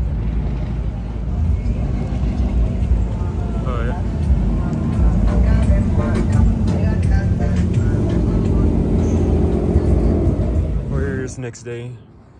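Car engines rumble loudly nearby.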